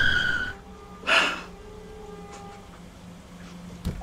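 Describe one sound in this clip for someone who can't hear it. A young woman sobs.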